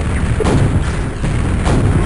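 A rocket bursts with a loud blast.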